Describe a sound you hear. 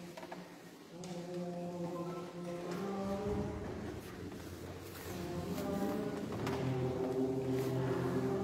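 A men's choir sings together in a large echoing hall.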